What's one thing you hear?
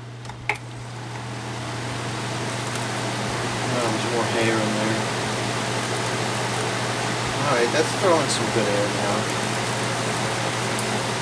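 Air from an electric fan rushes louder after the fan speeds up.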